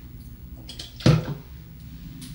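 A plastic bottle is set down on a hard surface with a knock.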